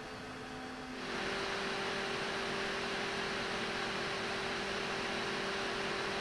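A second computer cooler's fans whir louder, with a higher airy rush.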